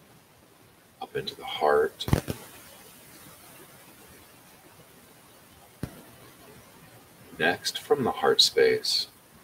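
A middle-aged man speaks calmly and slowly into a close microphone, with long pauses.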